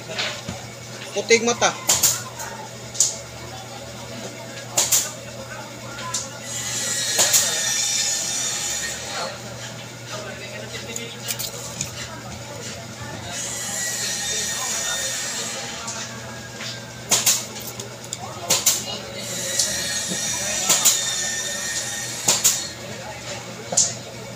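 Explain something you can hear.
A wooden stool knocks and clatters as it is handled.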